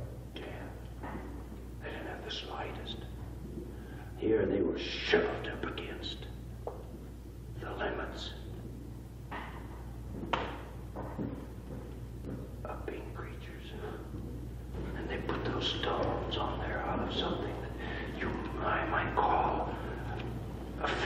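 A middle-aged man lectures with animation through an old, hissy recording.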